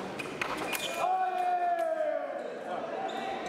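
A young man shouts briefly in a large echoing hall.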